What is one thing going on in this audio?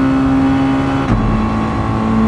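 A race car shifts up a gear with a brief jolt and drop in engine pitch.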